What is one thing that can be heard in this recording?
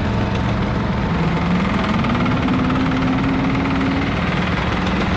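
An engine revs up with a rising whine.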